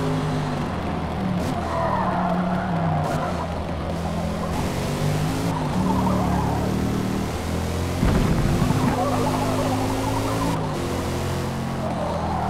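Tyres squeal as a car drifts through turns.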